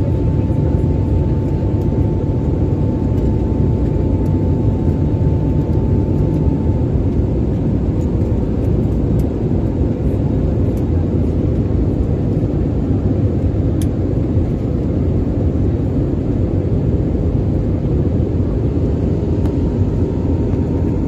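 A jet airliner's engines roar steadily in the cabin.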